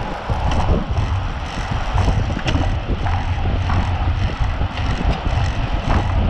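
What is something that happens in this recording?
Wind buffets loudly against a microphone outdoors.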